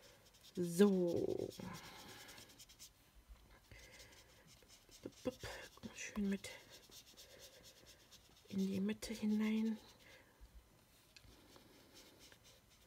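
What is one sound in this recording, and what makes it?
A sponge scrubs softly against paper.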